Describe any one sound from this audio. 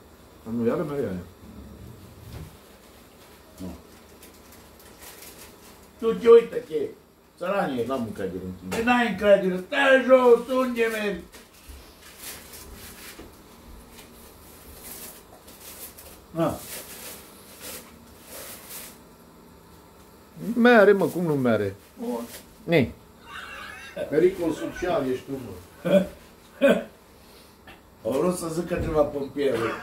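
Middle-aged men talk with animation at close range.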